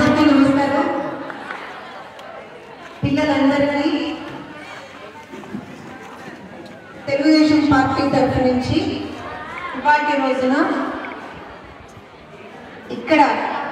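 A woman speaks loudly and with animation through a microphone and loudspeaker, echoing outdoors.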